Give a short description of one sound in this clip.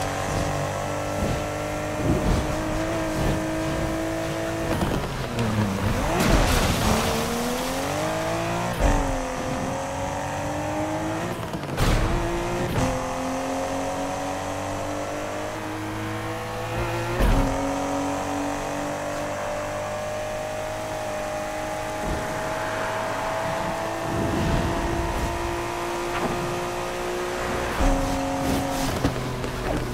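A car engine roars and revs up and down through gear changes.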